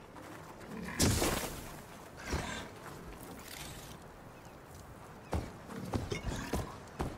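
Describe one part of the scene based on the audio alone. A large mechanical beast roars and clanks close by.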